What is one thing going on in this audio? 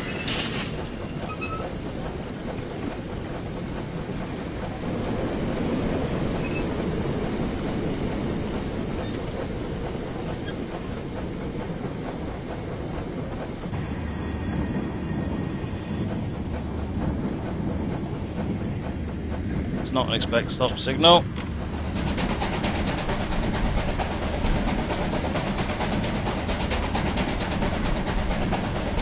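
A steam locomotive rumbles and chugs steadily along the rails.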